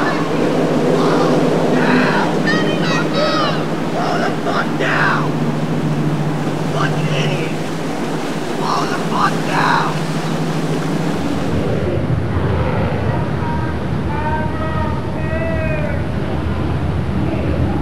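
Water splashes and churns around a boat's hull.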